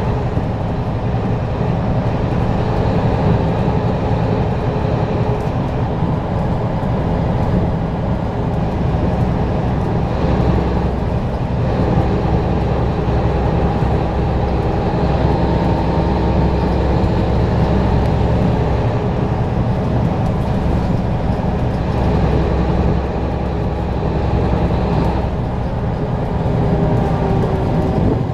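A car's engine hums steadily.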